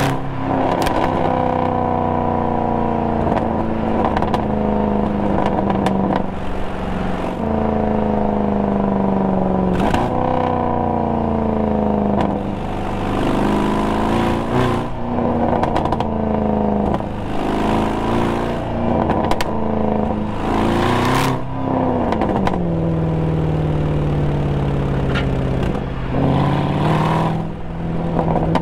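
Tyres roll on the road with a steady rumble.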